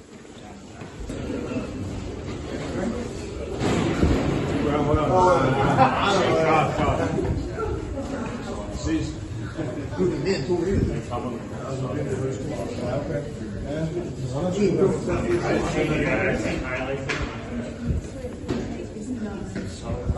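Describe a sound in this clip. A crowd of young men chatter loudly close by in an echoing room.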